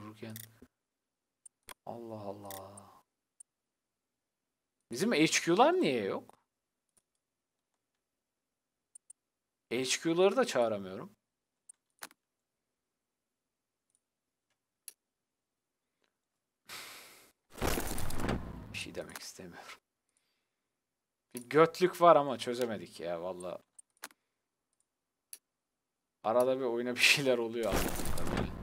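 A young man speaks close to a microphone in short, lively bursts with pauses between them.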